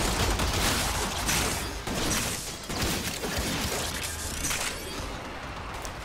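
Gunfire and explosions crackle in bursts.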